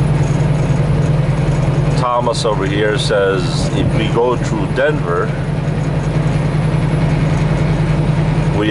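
A truck engine drones steadily at cruising speed.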